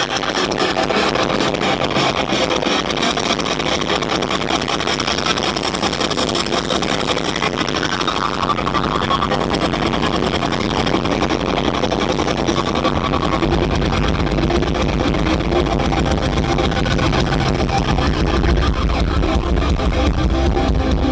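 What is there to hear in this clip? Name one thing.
An electric guitar plays loud and distorted.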